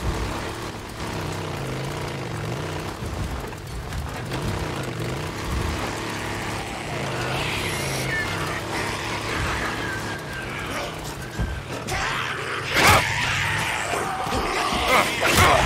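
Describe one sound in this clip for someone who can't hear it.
A motorcycle's tyres crunch over gravel.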